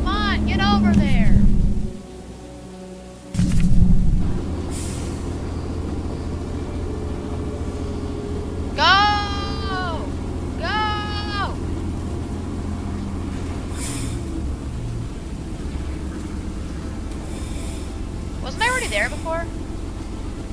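A steam whistle blows in short, loud blasts.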